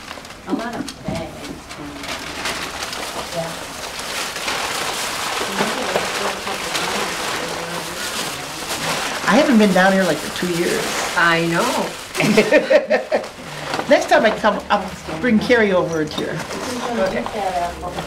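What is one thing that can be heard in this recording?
Several women talk and laugh nearby.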